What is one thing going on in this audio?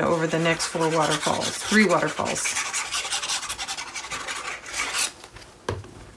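A cloth rustles and wipes against paper.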